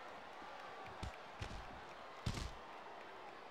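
A body thuds heavily onto a hard floor.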